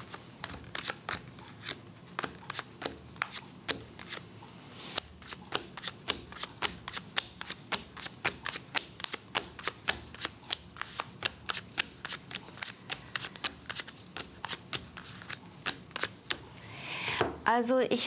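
Cards are shuffled and snapped together in quick, rapid clicks.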